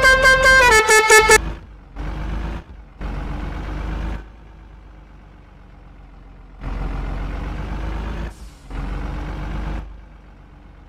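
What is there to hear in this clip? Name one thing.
A truck engine rumbles in low bursts.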